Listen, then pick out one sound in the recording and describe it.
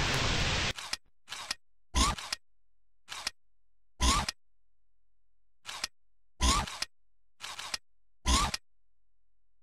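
Short electronic menu sounds chime in quick bursts, then stop.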